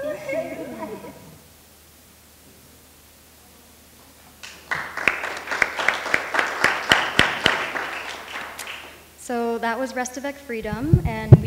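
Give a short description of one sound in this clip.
A young woman speaks cheerfully, heard through a loudspeaker in a large room.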